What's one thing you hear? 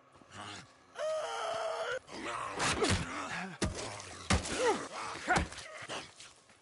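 A man grunts and groans in a struggle.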